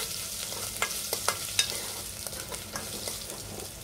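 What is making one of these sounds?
A metal spoon scrapes and clinks against a pot.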